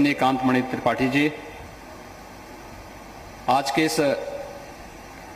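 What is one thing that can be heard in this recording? A man speaks forcefully into a microphone, heard through loudspeakers with a slight echo.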